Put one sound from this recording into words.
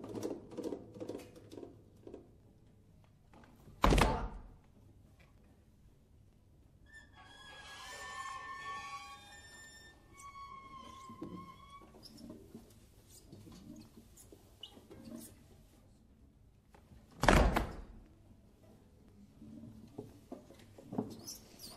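A group of acoustic guitars plays plucked notes together, soft and quiet in places.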